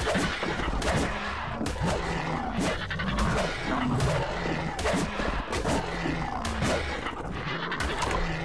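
Blows strike with sharp repeated thuds.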